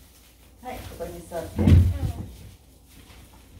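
A young girl answers in a high voice.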